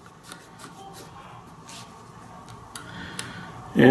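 A flashlight switch clicks.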